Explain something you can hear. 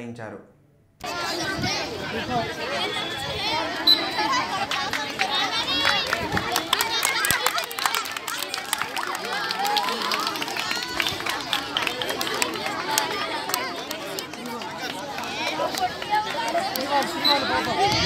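A crowd of children and adults chatters and shouts outdoors.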